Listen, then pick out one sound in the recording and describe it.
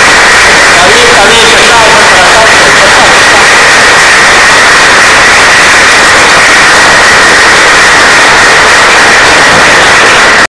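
A crowd applauds steadily.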